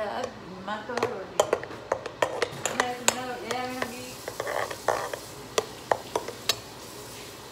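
Sharp metallic clicks and taps sound on a metal bowl.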